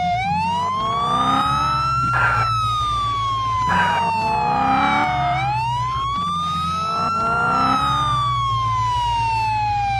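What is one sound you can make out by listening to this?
A police siren wails, rising and falling slowly.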